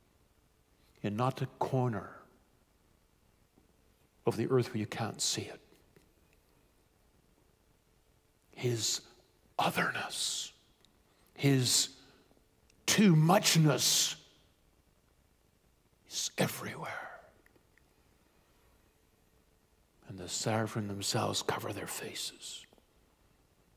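A middle-aged man speaks calmly into a microphone in short bursts, with long pauses.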